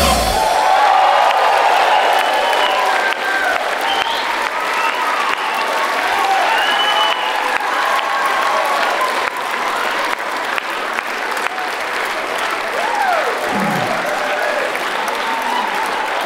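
A large crowd cheers and shouts loudly in a big hall.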